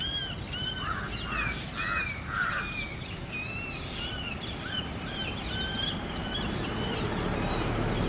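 An Asian koel screams in distress.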